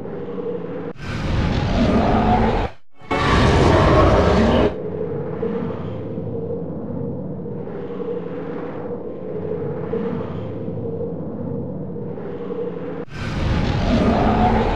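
Loud bursts of roaring magical energy rush and blast.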